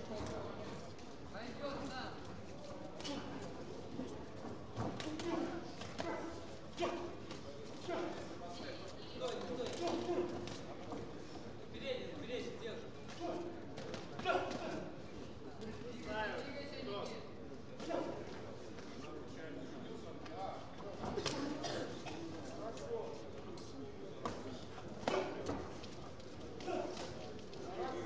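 Boxing gloves thud against a boxer in a large echoing hall.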